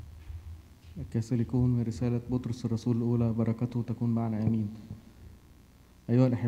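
A man chants loudly through a microphone in a large echoing hall.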